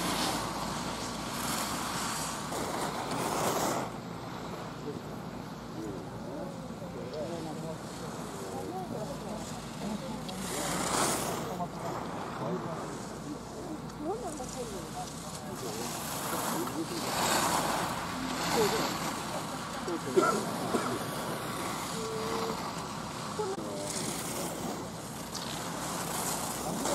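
Skis scrape and swish across hard snow.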